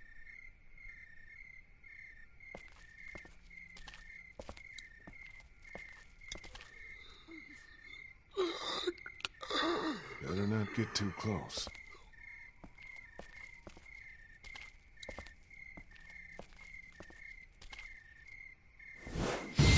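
Footsteps tap slowly on hard ground.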